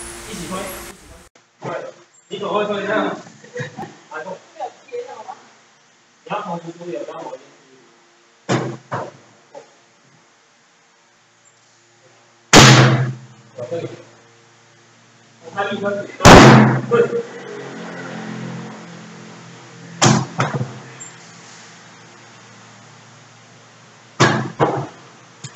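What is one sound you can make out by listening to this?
A heavy tyre thuds onto a concrete floor.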